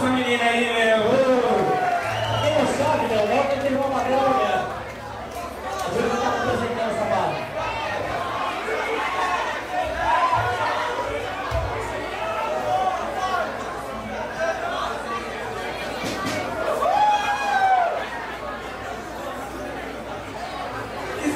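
A man sings loudly into a microphone over a live rock band.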